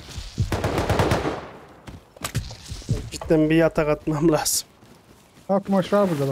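Footsteps tread over grass.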